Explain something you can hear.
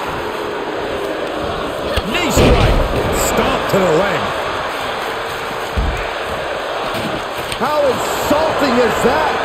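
A large crowd cheers and roars steadily in a big arena.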